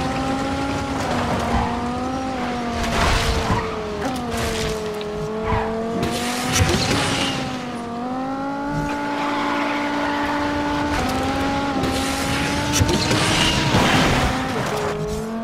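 A car engine roars at high speed, its pitch shifting as it changes gear.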